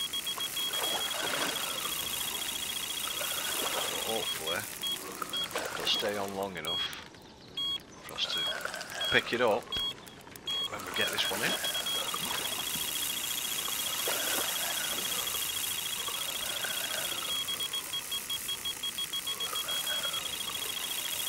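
A fishing reel clicks rapidly as its line is wound in.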